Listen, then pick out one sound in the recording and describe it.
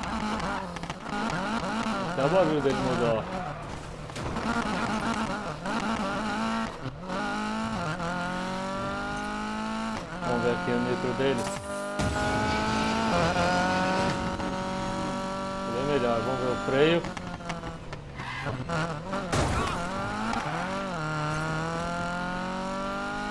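An old sedan's engine revs hard, climbing and dropping through the gears.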